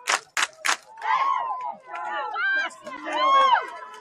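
Young men shout and cheer loudly nearby outdoors.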